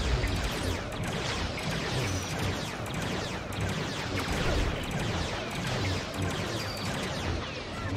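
Energy blasts hit a wall with crackling sparks.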